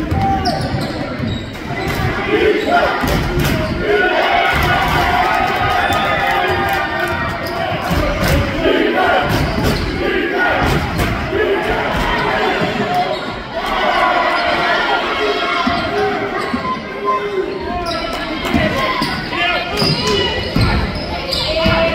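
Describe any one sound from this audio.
A crowd cheers and shouts loudly in an echoing gym.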